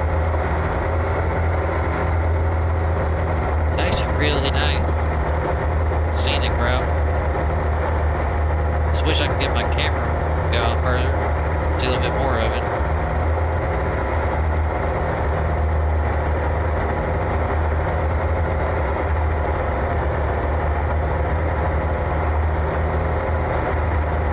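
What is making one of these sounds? Tyres crunch over a gravel track.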